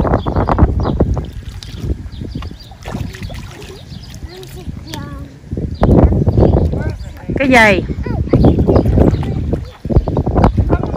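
Water splashes as a small child scoops with a bucket.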